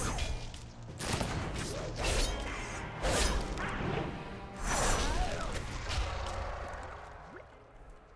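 Game spell effects whoosh and crackle during a fight.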